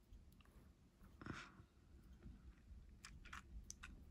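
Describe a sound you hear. Metal jewellery clinks softly as a watch is lifted from a pile.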